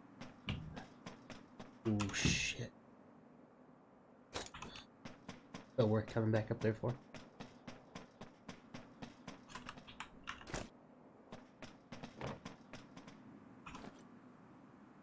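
Footsteps clang quickly on metal.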